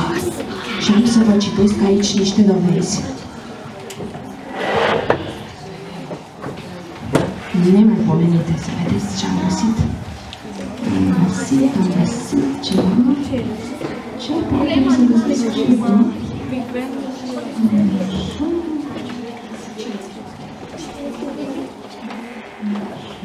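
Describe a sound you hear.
A woman speaks calmly into a microphone, heard through a loudspeaker in a large room.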